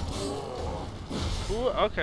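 A burst of fire roars out.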